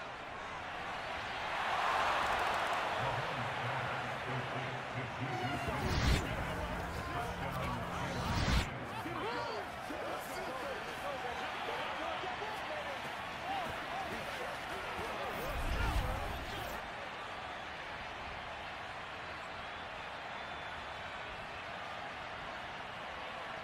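A stadium crowd roars and cheers throughout.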